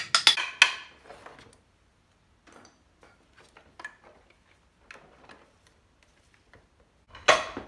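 Metal parts clink and scrape in a plastic tub.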